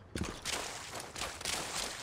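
Water splashes underfoot.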